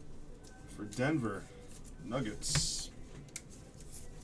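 A card is tossed onto a table with a light tap.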